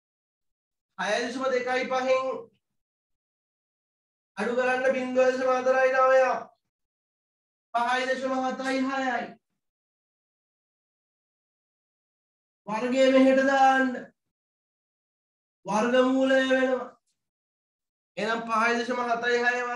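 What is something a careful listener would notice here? A man speaks calmly close by, in short bursts with pauses.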